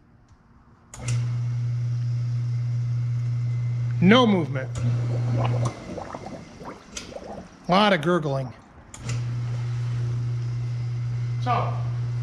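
A hot tub pump hums steadily.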